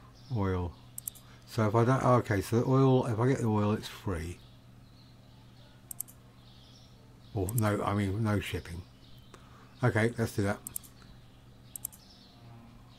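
A computer game's interface clicks softly several times.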